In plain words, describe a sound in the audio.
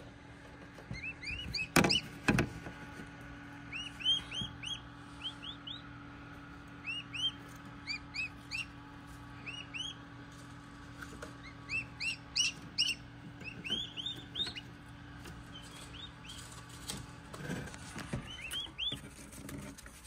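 Chicks cheep in high, repeated peeps.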